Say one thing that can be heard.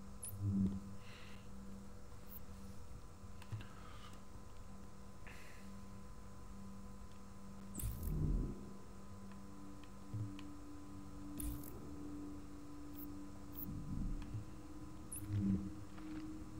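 Short soft clicks and chimes sound as game menu options change.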